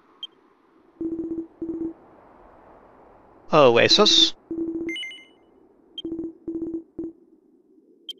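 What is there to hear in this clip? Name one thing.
Short electronic blips chirp in quick bursts.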